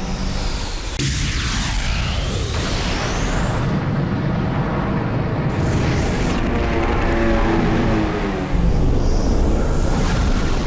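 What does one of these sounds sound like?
An energy beam blasts with a roaring whoosh.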